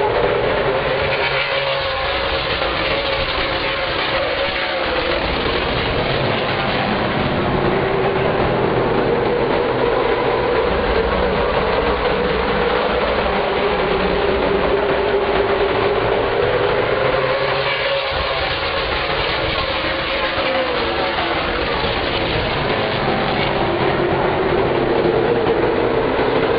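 Many race car engines roar loudly, rising and falling in pitch as the cars speed past close by.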